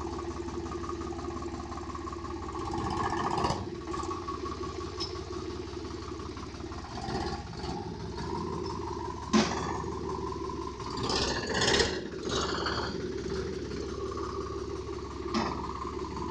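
A tractor engine idles with a steady low chugging.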